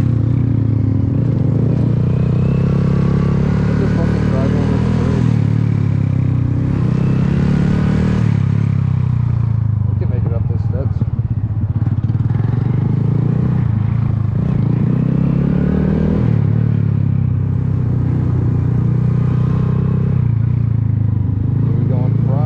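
A motorcycle engine hums and revs up and down while riding close by.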